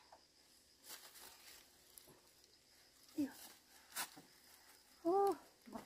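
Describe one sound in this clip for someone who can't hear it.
Bamboo poles knock together as a woman shifts on them.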